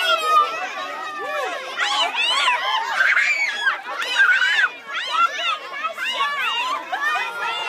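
Young girls laugh and shriek excitedly nearby.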